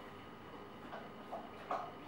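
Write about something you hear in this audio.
A baby slaps a hand on a plastic tray.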